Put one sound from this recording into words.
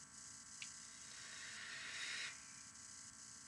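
A young man draws sharply on a vape with a soft hiss.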